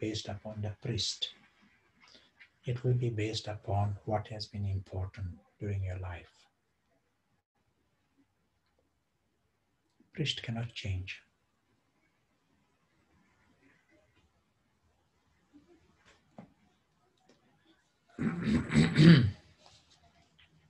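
A middle-aged man speaks calmly in pauses over an online call.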